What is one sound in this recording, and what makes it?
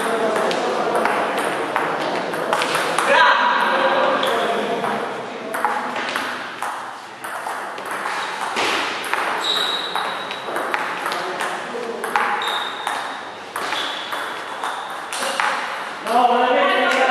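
A ping-pong ball clicks back and forth off paddles and a table in a quick rally.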